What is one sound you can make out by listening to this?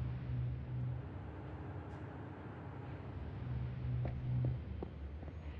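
Heavy footsteps thud in short runs.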